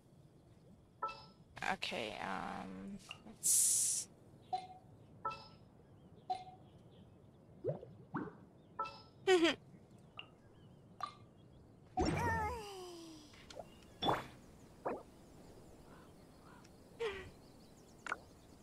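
Soft game menu chimes and clicks sound now and then.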